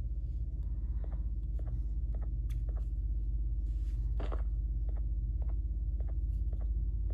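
Fingertips tap lightly on a touchscreen.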